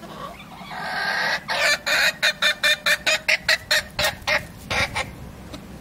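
A chicken cackles loudly in rapid bursts.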